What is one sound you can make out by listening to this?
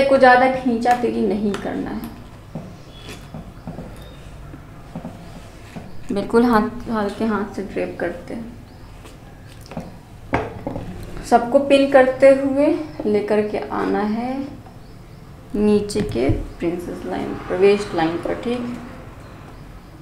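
A young woman explains calmly, close to the microphone.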